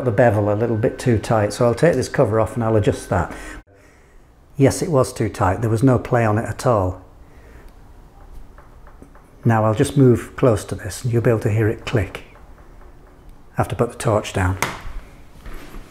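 An older man talks calmly and clearly, close by.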